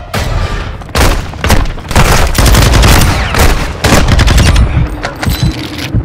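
Loud explosions boom and rumble nearby.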